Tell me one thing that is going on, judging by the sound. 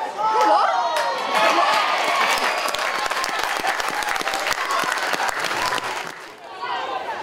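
A small crowd cheers and claps after a goal.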